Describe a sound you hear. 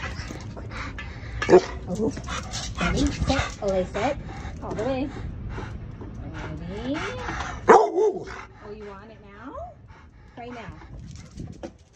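A dog pants heavily close by.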